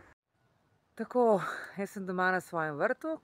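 A woman speaks calmly, close up.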